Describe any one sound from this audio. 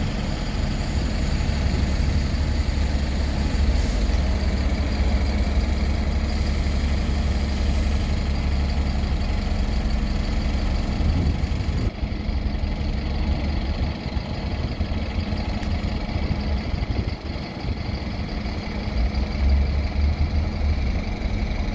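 A bus drives slowly past.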